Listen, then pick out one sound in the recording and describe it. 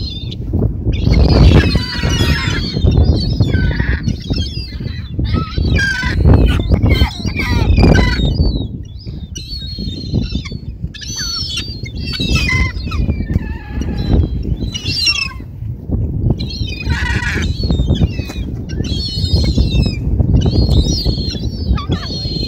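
A flock of gulls calls overhead.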